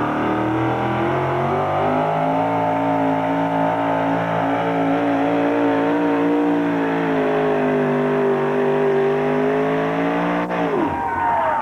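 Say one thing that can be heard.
A truck's engine roars loudly at a steady high pitch, then cuts off suddenly.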